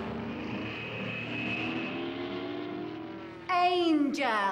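A propeller plane engine drones steadily.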